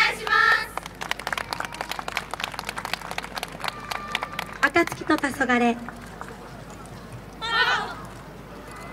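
A group of young dancers shouts out calls together outdoors.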